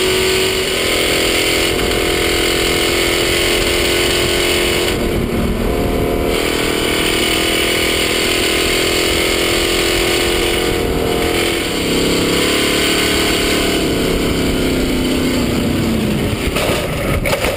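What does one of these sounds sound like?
A racing engine roars loudly close by, rising and dropping in pitch as it shifts gears.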